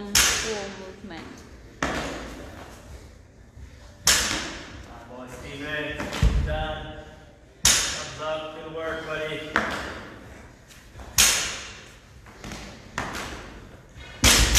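A barbell drops onto a floor with a loud thud that echoes in a large room.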